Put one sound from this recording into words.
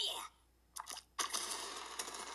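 Bubbles burst in a noisy, popping blast.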